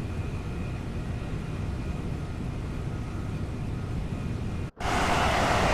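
An electric train hums and rumbles steadily from inside the driver's cab.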